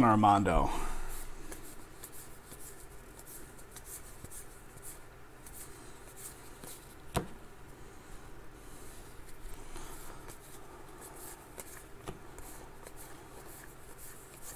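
Trading cards rustle and flick as hands shuffle through a stack.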